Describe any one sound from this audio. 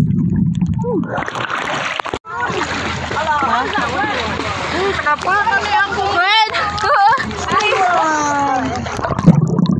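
Water splashes and sloshes close by at the surface.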